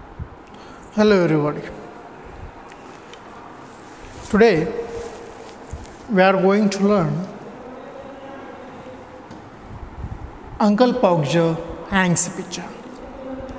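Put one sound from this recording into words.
A man speaks loudly in short bursts in a small echoing room.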